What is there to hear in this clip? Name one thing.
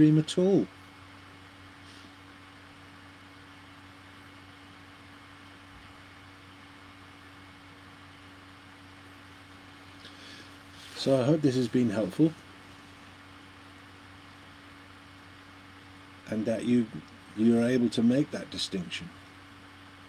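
An elderly man speaks calmly and slowly into a nearby microphone, with long pauses.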